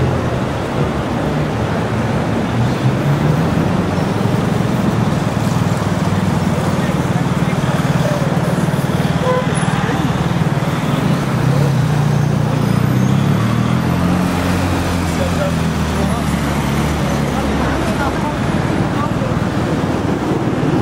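City traffic rumbles steadily along a street outdoors.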